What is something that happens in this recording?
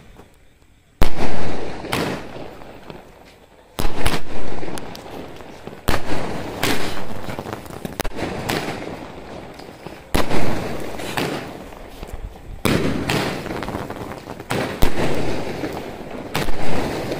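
Fireworks bang loudly in the sky, echoing.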